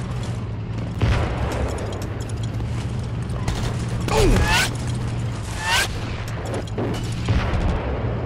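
A gun's mechanism clicks and rattles as a weapon is switched.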